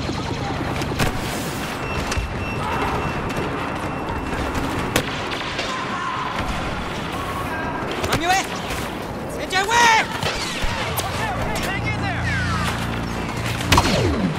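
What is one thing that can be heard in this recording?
Laser blasters fire in sharp bursts.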